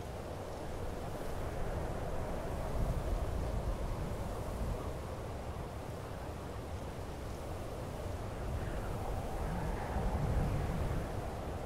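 Wind blows steadily and gusts low outdoors.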